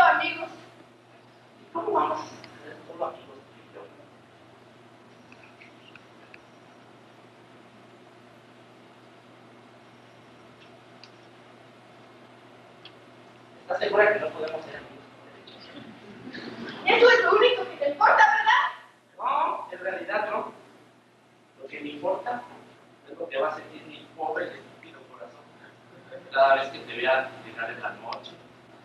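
A young man speaks on stage in a hall, heard from the audience.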